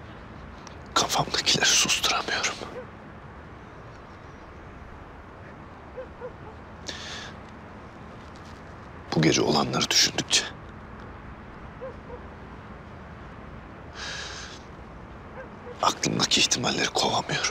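A man speaks quietly and emotionally, close by.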